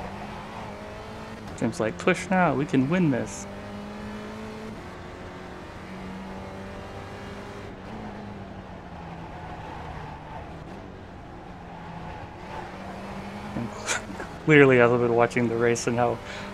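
A racing car engine drones steadily, its pitch rising and falling with the gears.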